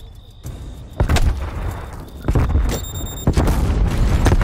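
Loud gunshots ring out in bursts.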